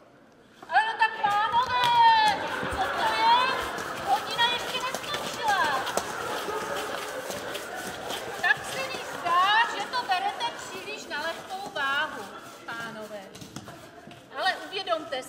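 A middle-aged woman speaks loudly and with animation in an echoing hall.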